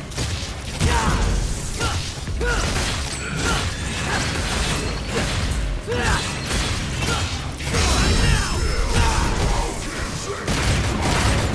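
Bright blasts explode with a loud roar.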